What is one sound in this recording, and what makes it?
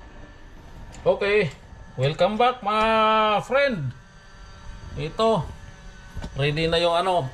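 A middle-aged man talks with animation close by.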